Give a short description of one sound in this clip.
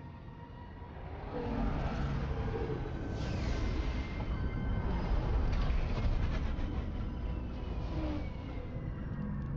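A spaceship's engines roar loudly as it comes in to land.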